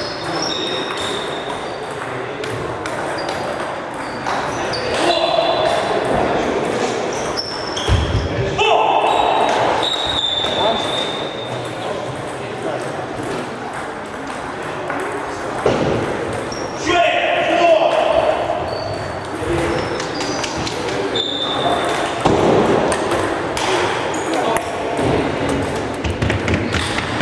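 Men talk and call out in the distance in an echoing hall.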